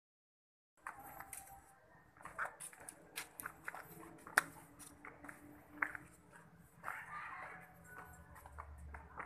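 Footsteps scuff on stone steps outdoors.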